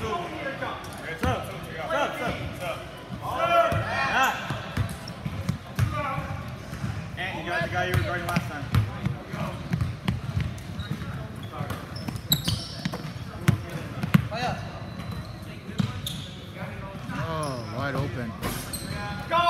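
Young players shout and call to each other in a large echoing gym.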